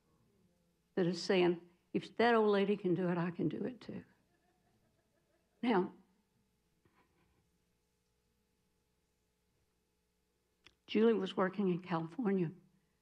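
A middle-aged woman speaks into a microphone in bursts, with pauses between.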